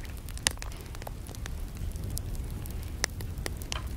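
Grass rustles and crackles as a hand reaches in.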